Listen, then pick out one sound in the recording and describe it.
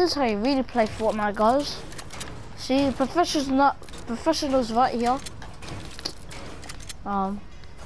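Building pieces snap into place with quick clicks.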